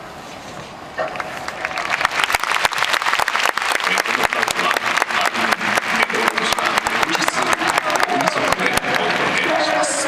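A large crowd claps rapidly in a big echoing stadium.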